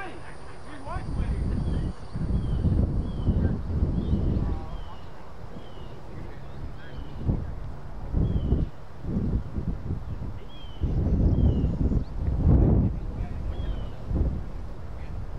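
Wind gusts buffet across an open field.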